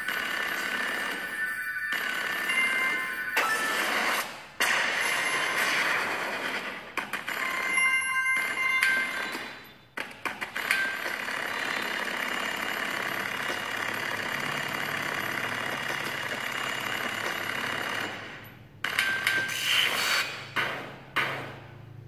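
Upbeat electronic game music plays from a small tablet speaker.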